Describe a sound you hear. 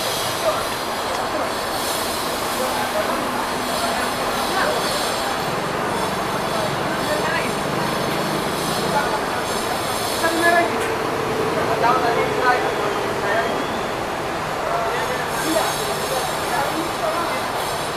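A bus engine idles with a low hum.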